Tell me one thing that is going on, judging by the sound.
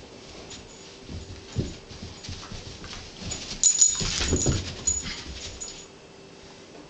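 A dog and a cat scuffle and scamper about.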